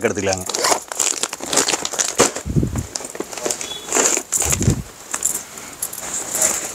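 Plastic packaging crinkles and rustles in a man's hands.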